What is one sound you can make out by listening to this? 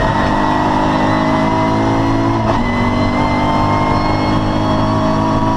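A racing car engine roars loudly from close by inside the car.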